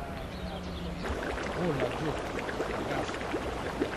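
Floodwater flows steadily past.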